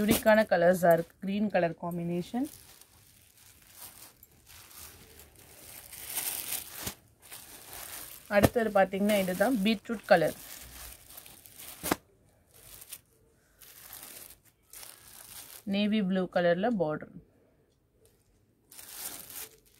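Cloth rustles softly as hands unfold and smooth it.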